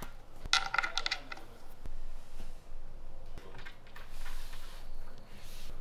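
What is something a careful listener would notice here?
A screwdriver turns a screw into a board.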